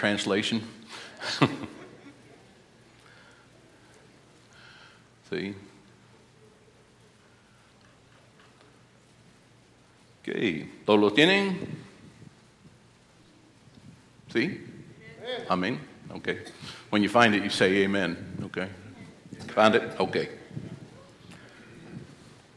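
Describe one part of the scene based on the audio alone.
An elderly man speaks calmly through a microphone, with long pauses, in an echoing hall.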